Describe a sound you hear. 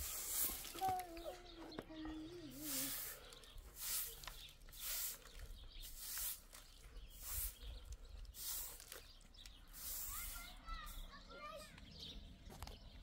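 A broom sweeps with brisk, repeated swishes.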